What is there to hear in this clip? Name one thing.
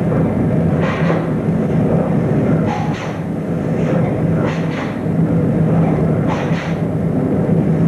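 A man's uniform snaps sharply with quick punches and blocks.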